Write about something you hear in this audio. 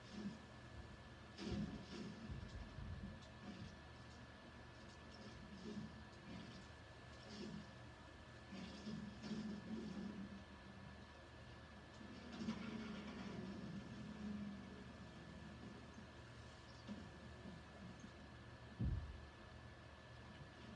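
Video game sound effects play through a television speaker.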